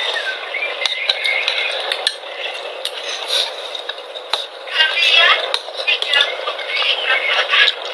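A young woman chews and slurps food close to the microphone.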